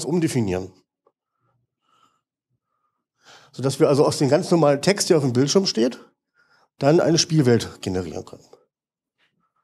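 A man speaks calmly into a microphone, lecturing with long pauses.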